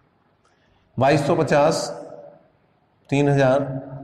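A man speaks clearly and with emphasis, close to a microphone.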